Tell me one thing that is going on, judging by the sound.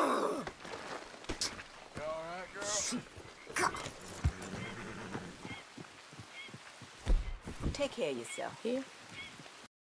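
Horse hooves squelch through mud.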